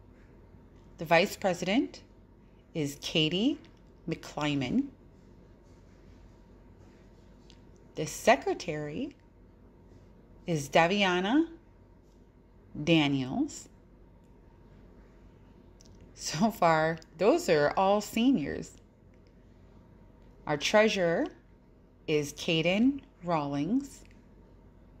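A woman speaks calmly in short phrases with pauses, close to a microphone.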